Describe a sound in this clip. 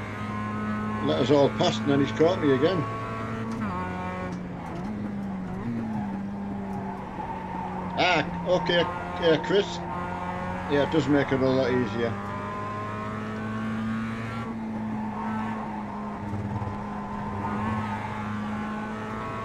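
A racing car engine drones steadily and shifts pitch with gear changes.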